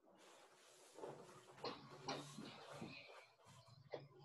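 Fabric rustles softly as a coat is pulled on.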